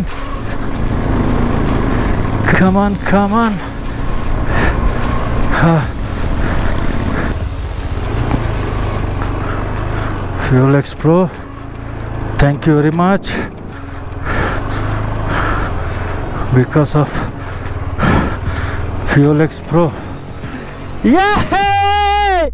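A motorcycle engine rumbles steadily as it climbs.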